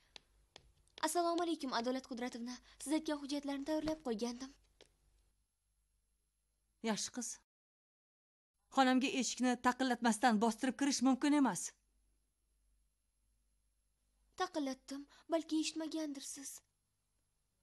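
A middle-aged woman speaks sternly and clearly, close by.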